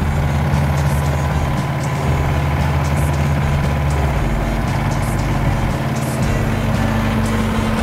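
A small excavator's diesel engine runs with a steady low rumble.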